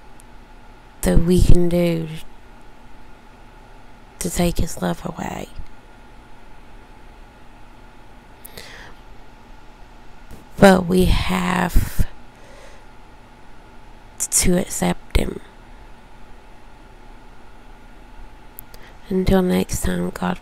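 A woman speaks close to the microphone in short bursts with pauses.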